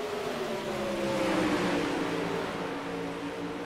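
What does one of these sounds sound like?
A racing car engine drops in pitch as it passes close by.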